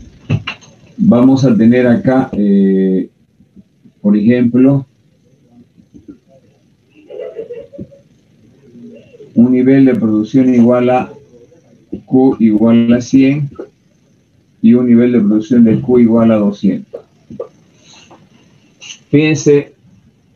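A man speaks calmly, explaining, close to the microphone.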